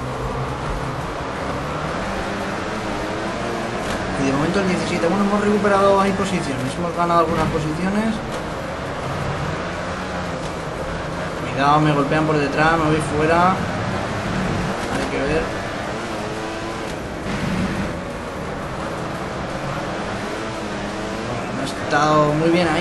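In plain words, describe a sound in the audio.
Motorcycle engines roar and whine steadily.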